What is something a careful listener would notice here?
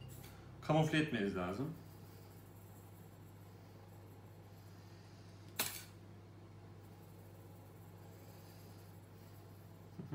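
A spoon scrapes and scatters crumbs over a dish.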